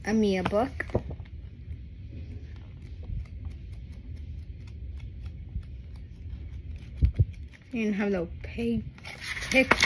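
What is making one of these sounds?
Paper pages flip and rustle close by.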